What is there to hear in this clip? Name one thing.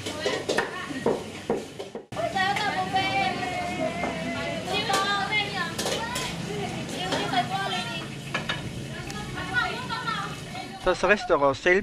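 Several women talk nearby in a busy, open space.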